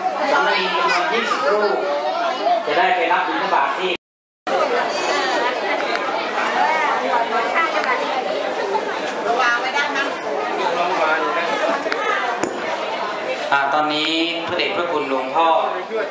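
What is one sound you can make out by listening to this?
A crowd of children and adults chatters nearby.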